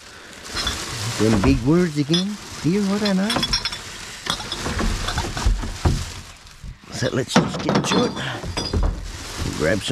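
Rubbish clatters as it is dropped into a bin.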